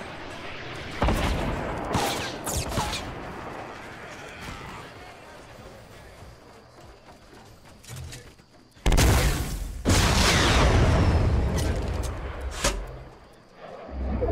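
Wooden walls snap into place with quick thuds.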